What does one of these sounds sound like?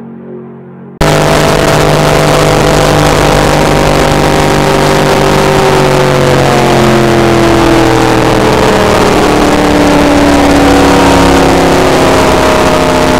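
Wind rushes loudly against a speeding car.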